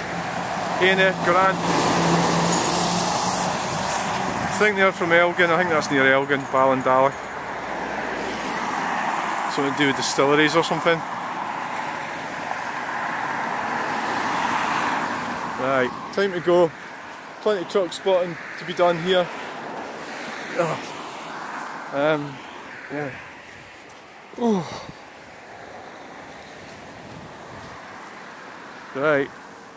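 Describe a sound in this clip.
Car tyres hiss along a wet road.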